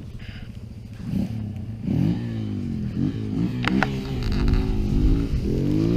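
A dirt bike engine revs and whines as it approaches along a track.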